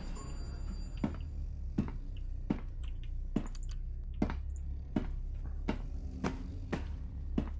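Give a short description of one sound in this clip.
Footsteps tap steadily on a hard floor in an echoing corridor.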